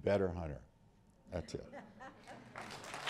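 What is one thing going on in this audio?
A middle-aged man speaks into a microphone.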